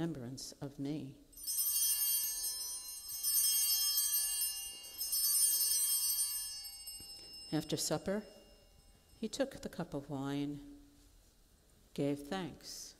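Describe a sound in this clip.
A man speaks slowly and solemnly in a large echoing hall, in short phrases with pauses.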